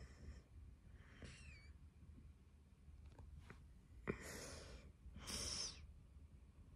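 A young boy makes short breathy sounds with his voice very close by.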